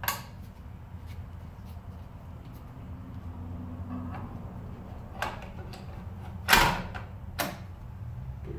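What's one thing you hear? A plastic battery cover clicks open and shut on a device.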